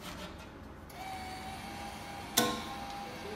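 A payment machine beeps steadily.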